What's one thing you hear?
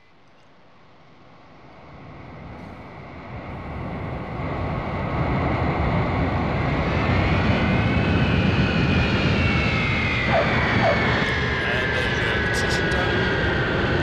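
A jet airliner's engines roar, growing louder as the plane approaches and passes close by.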